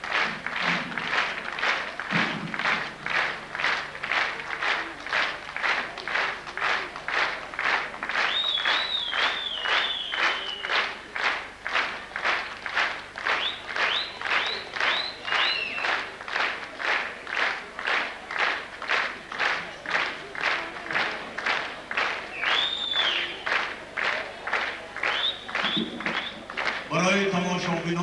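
An audience claps in a steady rhythm in a large hall.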